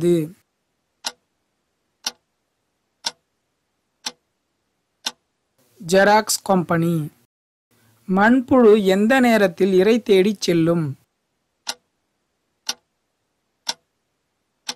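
A countdown timer ticks once a second.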